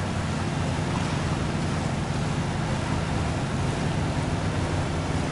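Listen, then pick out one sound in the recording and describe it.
Water splashes and churns under a truck's tyres.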